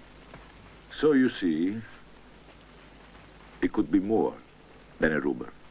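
A man speaks calmly and smoothly, close by.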